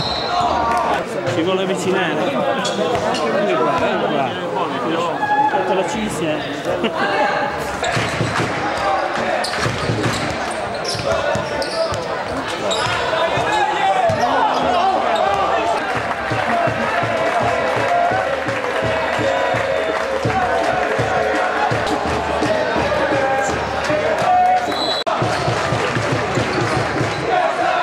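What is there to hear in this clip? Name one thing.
A crowd cheers and chatters in a large echoing hall.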